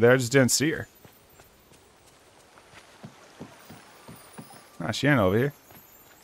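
Quick footsteps patter on a dirt path.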